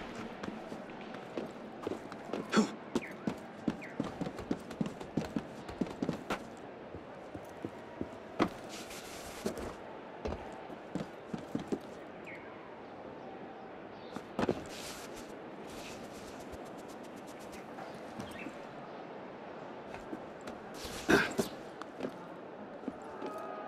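Quick footsteps patter and thud on a roof.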